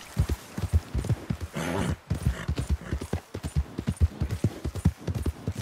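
Horse hooves thud rapidly on soft ground at a gallop.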